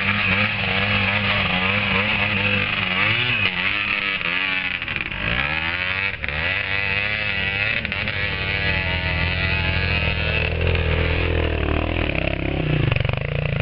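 Tyres churn through loose mud.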